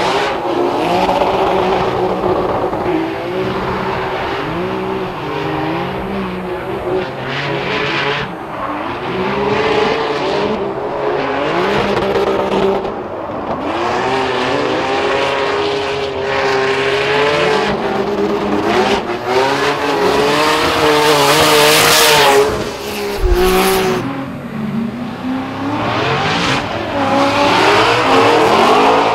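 Tyres screech as cars slide sideways.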